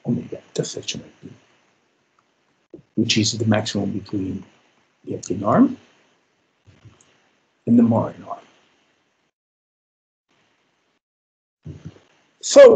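A man speaks calmly in short phrases over an online call, with pauses.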